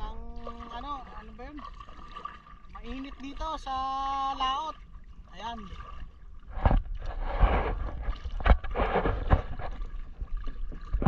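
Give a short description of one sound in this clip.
Water splashes and sprays beside a boat.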